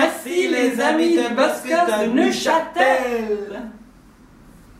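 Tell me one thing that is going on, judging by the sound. A middle-aged man sings loudly with animation.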